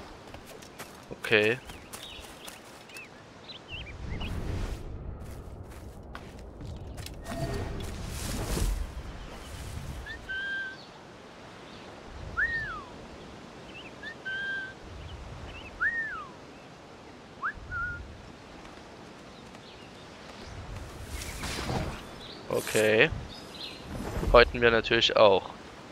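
Footsteps rustle through grass and low plants.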